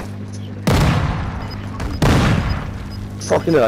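A rifle fires loud, booming shots that echo away.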